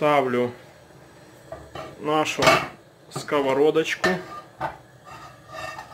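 A metal pan clanks onto a stove grate.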